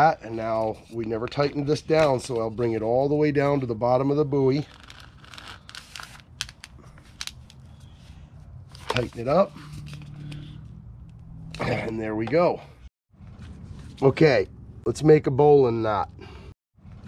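A middle-aged man talks calmly, close by, outdoors.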